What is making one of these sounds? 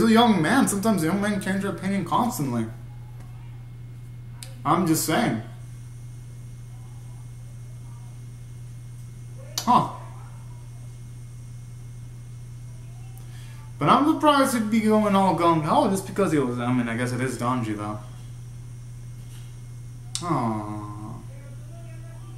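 A young man talks into a nearby microphone, with pauses.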